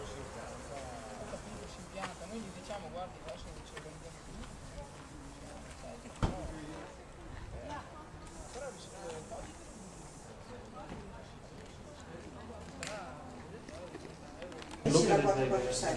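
Elderly women talk nearby outdoors.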